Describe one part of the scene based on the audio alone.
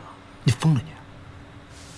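A young man asks a sharp question up close.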